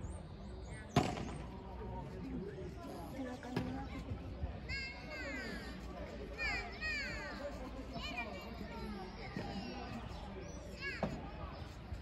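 Padel rackets strike a ball with sharp pops.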